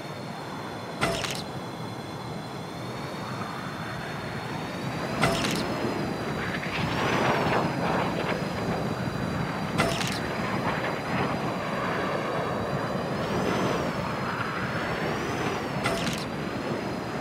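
A bright chime rings each time a flyer passes through a ring.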